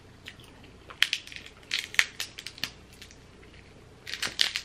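Crab shells crack and snap close to a microphone.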